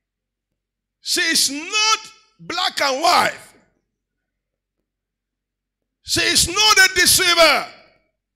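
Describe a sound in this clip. A middle-aged man speaks with animation through a microphone, heard over loudspeakers.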